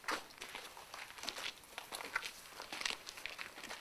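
Footsteps shuffle nearby.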